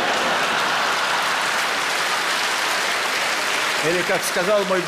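A large audience claps and laughs.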